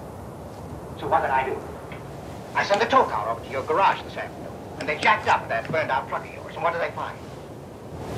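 A man speaks quietly and slowly nearby.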